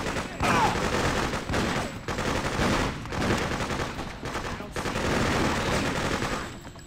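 Pistol shots fire in quick bursts and echo off hard walls.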